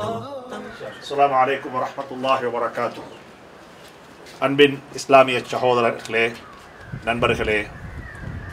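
A man speaks calmly and clearly into a microphone, close by.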